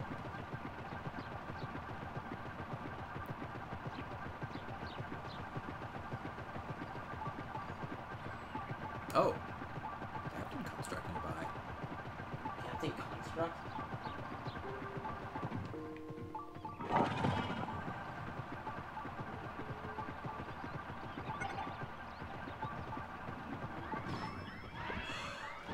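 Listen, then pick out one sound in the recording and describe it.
A mechanical vehicle rumbles and whirs steadily as it drives over grass.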